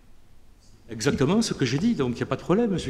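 A middle-aged man speaks clearly into a microphone.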